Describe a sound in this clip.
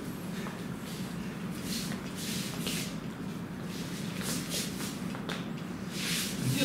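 Hands and sleeves brush and slap against each other.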